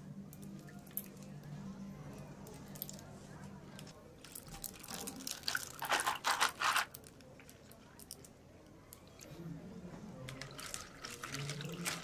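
Liquid pours and splashes over ice.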